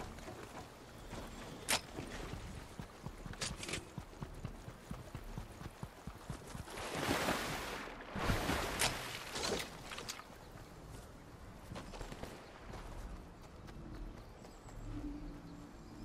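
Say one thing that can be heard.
Quick footsteps run across grass and dirt.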